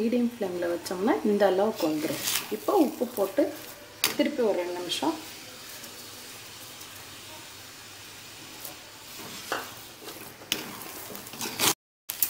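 A metal spoon scrapes and stirs thick food in a metal pot.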